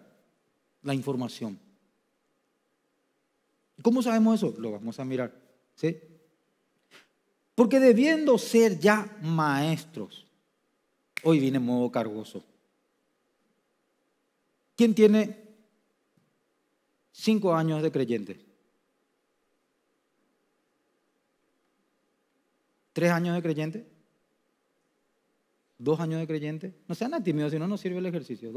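A man speaks with animation through a microphone, in short phrases with pauses.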